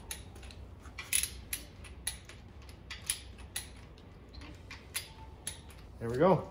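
A ratchet wrench clicks in short bursts.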